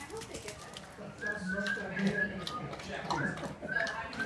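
Two dogs eat noisily from a bowl, crunching and clinking.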